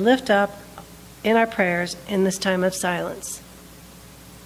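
A middle-aged woman speaks with feeling into a microphone.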